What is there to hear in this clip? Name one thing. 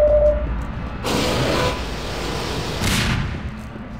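A portal opens with a crackling whoosh.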